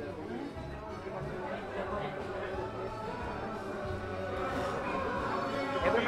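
A crowd of men and women chatter in the background.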